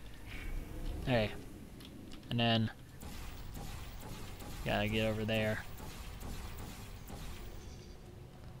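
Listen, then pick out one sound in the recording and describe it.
A laser beam hums steadily.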